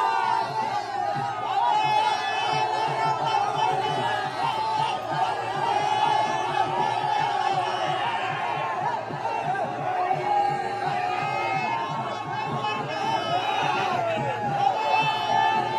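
A large crowd of young men cheers and shouts loudly outdoors.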